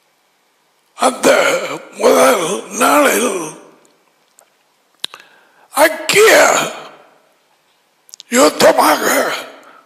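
An elderly man speaks with animation through a headset microphone, in short bursts with pauses.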